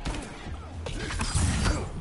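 An explosion bursts with a fiery roar.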